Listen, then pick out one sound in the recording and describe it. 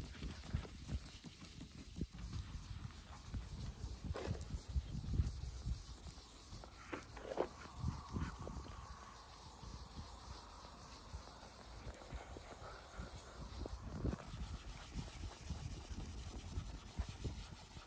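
A cloth rubs softly across a car's paintwork.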